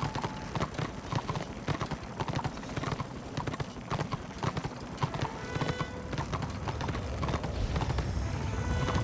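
A horse's hooves clop steadily on stony ground.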